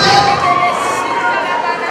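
A woman close by sings with feeling.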